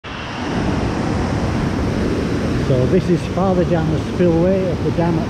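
Water rushes and roars loudly over rocky falls.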